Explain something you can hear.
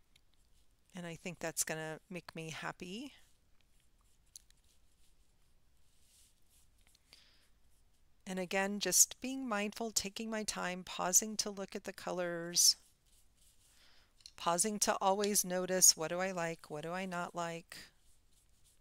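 A woman speaks calmly into a headset microphone, in short bursts with pauses.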